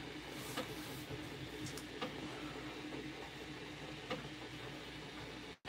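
A marker scratches softly on paper.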